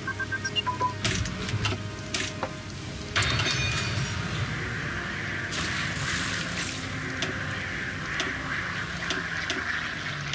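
Soft interface clicks sound as menus open and close.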